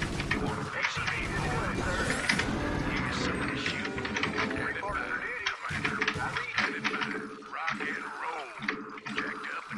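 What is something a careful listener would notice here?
Rapid gunfire rattles in a busy battle.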